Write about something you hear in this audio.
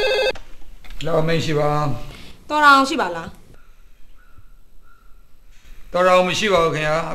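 A middle-aged man speaks into a telephone.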